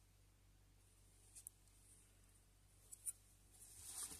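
Metal tweezers tap against a small plastic part.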